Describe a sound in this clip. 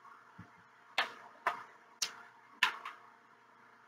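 Gloved fingers tap lightly on a metal tray.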